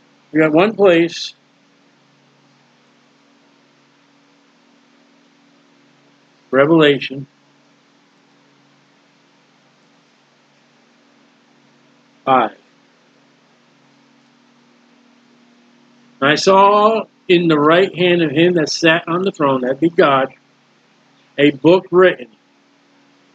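A man speaks calmly into a microphone in short bursts, heard as if over an online call.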